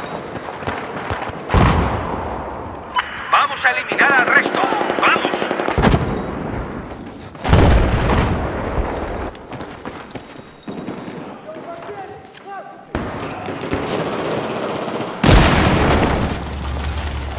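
Gunfire cracks in loud bursts.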